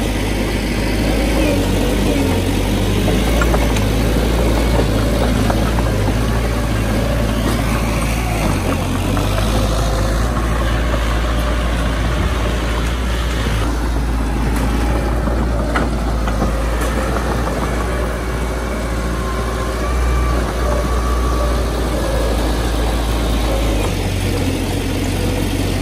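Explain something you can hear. Bulldozer tracks clank and squeak as they crawl over dirt.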